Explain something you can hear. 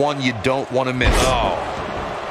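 A body slams hard onto a ring mat with a heavy thud.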